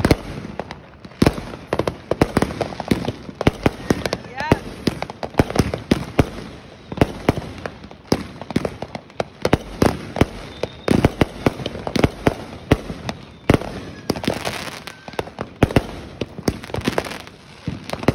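Fireworks bang and crackle rapidly overhead, outdoors.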